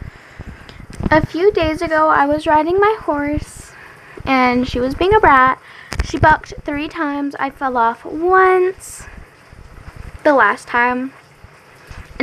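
A young girl sings close to the microphone.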